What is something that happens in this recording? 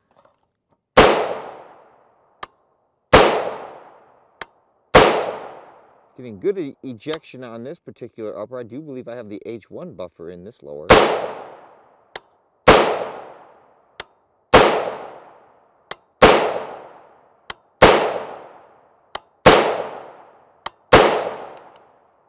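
A rifle fires sharp, loud shots one after another, each ringing out over open ground.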